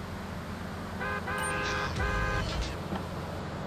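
A car horn honks in short blasts.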